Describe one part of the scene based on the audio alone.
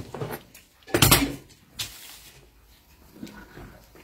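Scissors clatter as they are set down on a table.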